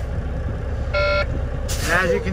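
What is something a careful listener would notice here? A warning chime beeps briefly.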